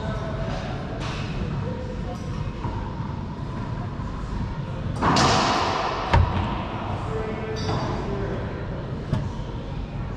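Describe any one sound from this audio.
A ball smacks sharply off the walls of an echoing court.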